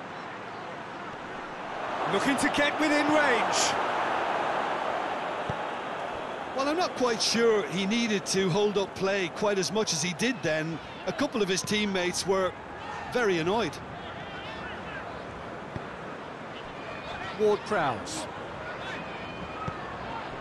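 A large stadium crowd roars and murmurs steadily, swelling for a moment.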